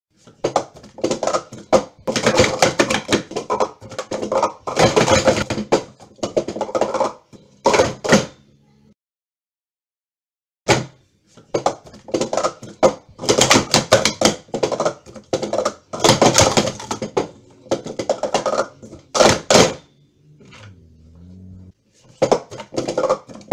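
Plastic cups clatter and clack rapidly as they are stacked and unstacked.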